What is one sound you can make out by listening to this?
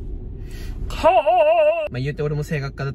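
A young man sings a short, wavering note.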